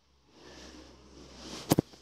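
Footsteps thud on carpeted stairs.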